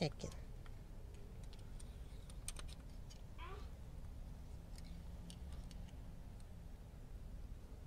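A ratchet wrench clicks as it is turned.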